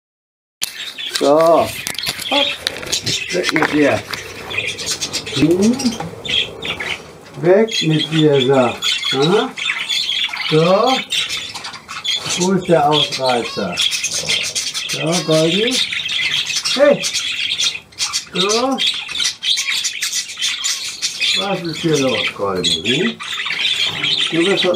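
Budgies chirp and chatter steadily.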